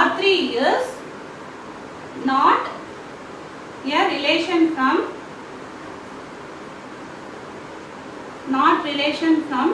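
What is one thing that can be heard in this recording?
A young woman speaks calmly and clearly in short phrases, close by.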